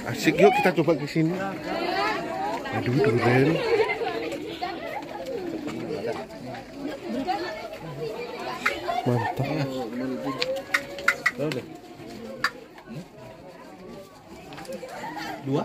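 Men and women talk close by in a busy crowd.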